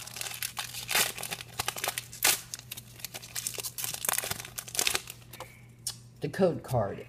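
Foil wrapping crinkles and tears close by.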